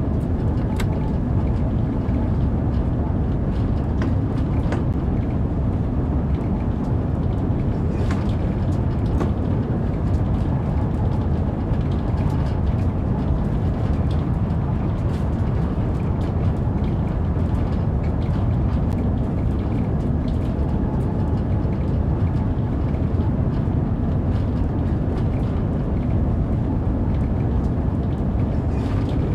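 A train rumbles steadily at speed through a tunnel.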